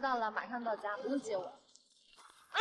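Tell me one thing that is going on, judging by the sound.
A young woman speaks calmly on a phone.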